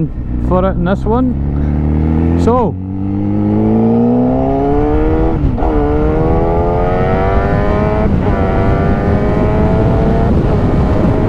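A motorcycle engine revs sharply and then pulls hard, rising in pitch through each gear.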